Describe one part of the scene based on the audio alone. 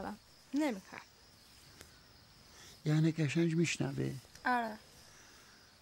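An elderly man speaks slowly and weakly, close by.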